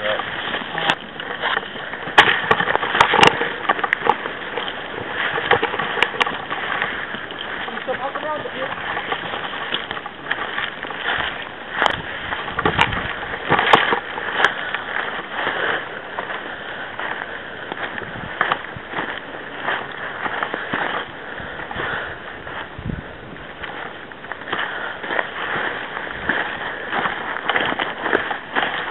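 Footsteps crunch on dry pine needles and twigs.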